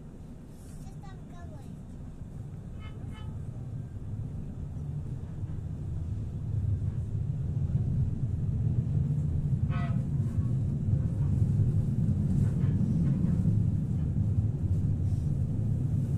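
A tram rumbles along the rails, growing louder as it picks up speed.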